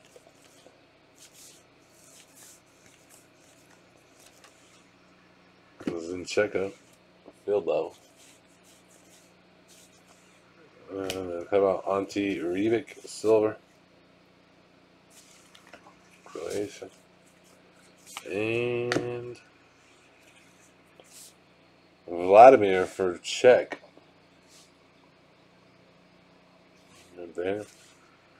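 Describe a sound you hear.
Trading cards rustle and slide against one another as they are shuffled by hand.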